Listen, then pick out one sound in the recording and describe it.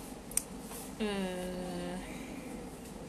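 A young woman lets out a short, drawn-out whimper close by.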